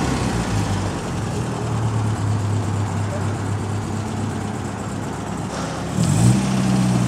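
A vintage four-cylinder sports car engine burbles at low revs as the car rolls slowly along.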